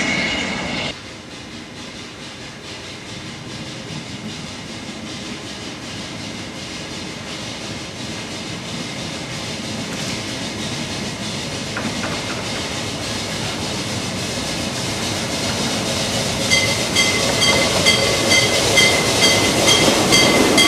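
A steam locomotive approaches, its rhythmic puffing growing louder.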